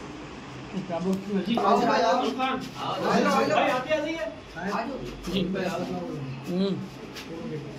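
Several men talk together nearby.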